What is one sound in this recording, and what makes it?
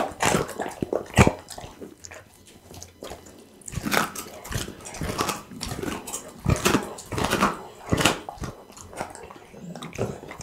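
A dog licks and slurps wetly close to a microphone.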